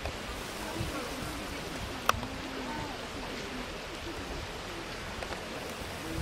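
A man and a woman talk quietly nearby.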